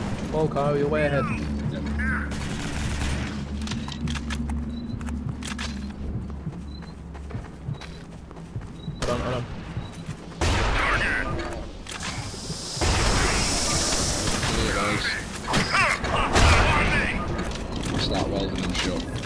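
Guns fire in short bursts.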